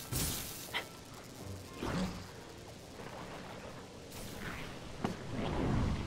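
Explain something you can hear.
Glowing sprites whoosh and chime.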